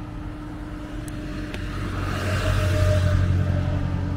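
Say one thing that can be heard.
A motorbike rides past in the distance.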